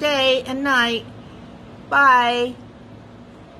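An elderly woman speaks close up with animation.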